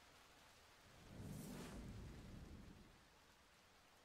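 A wave surges and crashes with a deep rumbling roar.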